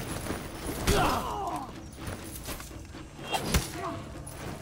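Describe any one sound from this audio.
Swords clash with sharp metallic strikes.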